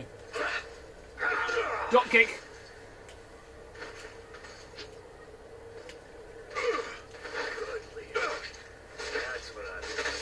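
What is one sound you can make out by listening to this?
Game sound effects of a fight thud and clash.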